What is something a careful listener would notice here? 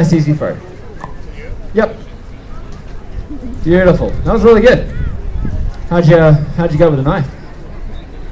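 A man shouts loudly to a crowd outdoors.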